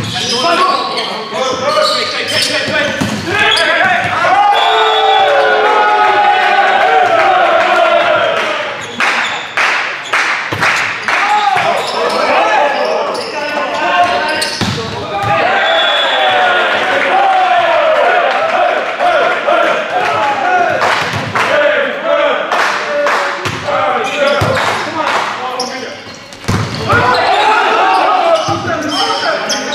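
A crowd cheers and chants from the sidelines.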